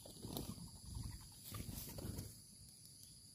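A dove coos softly nearby.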